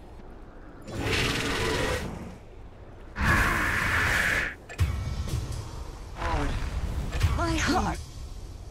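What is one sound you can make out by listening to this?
Game spell effects whoosh and crash in a second fight.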